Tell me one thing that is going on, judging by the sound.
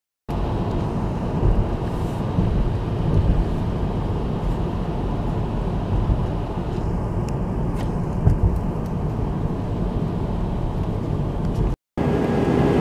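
A car engine hums.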